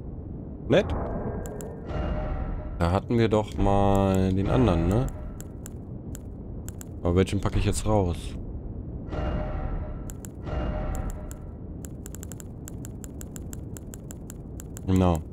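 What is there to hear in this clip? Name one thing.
Game menu clicks tick quickly and repeatedly.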